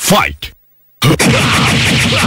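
A hard blow lands with a sharp smack.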